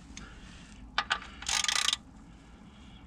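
A plastic cover clicks and rattles as a hand pries it loose.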